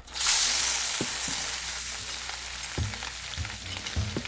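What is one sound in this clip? A spatula scrapes against a metal pan.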